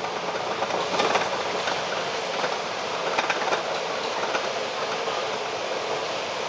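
Traffic rumbles steadily along a road.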